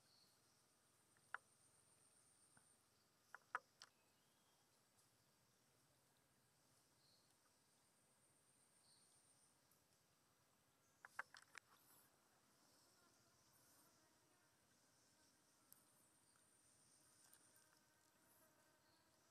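A shallow stream trickles softly outdoors.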